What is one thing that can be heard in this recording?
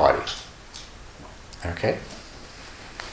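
An elderly man speaks calmly, close to a microphone.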